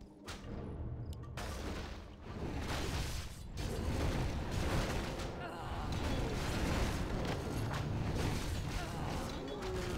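Weapons clash and thud in a hectic battle.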